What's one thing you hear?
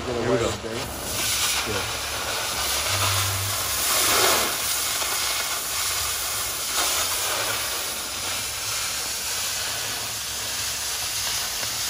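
A cutting torch roars and hisses as it cuts through metal.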